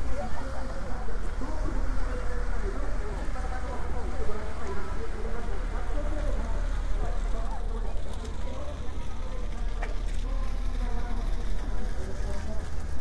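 Men and women chat in the open air nearby.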